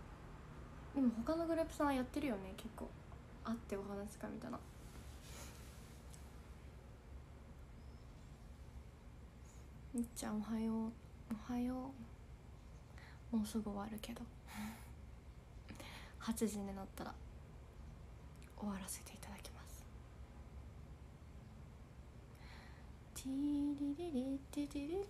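A young woman speaks calmly and close up, in short bursts with pauses.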